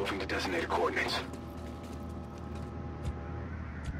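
Footsteps tap quickly on hard pavement.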